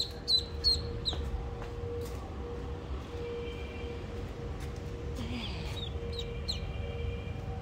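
A newly hatched duckling peeps shrilly.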